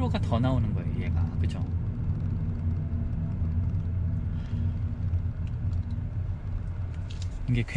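Tyres rumble over the road.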